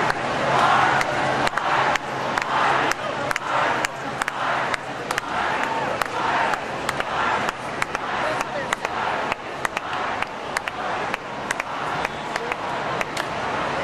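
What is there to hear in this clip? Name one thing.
A man claps his hands close by.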